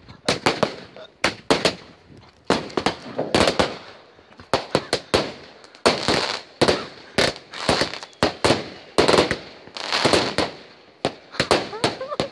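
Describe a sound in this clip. Fireworks bang and crackle loudly in rapid bursts, echoing outdoors.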